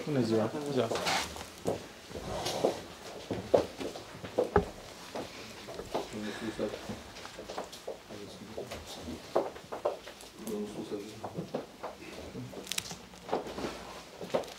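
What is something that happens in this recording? Heavy folders thump down onto a table.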